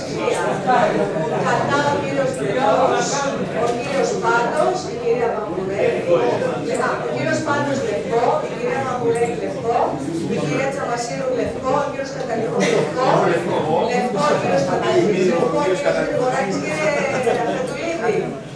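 An elderly man speaks steadily into a microphone in an echoing room.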